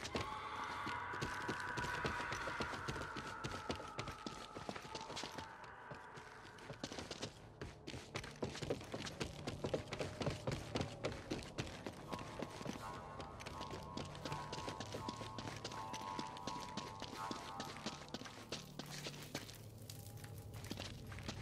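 Footsteps run quickly over stone and wooden planks.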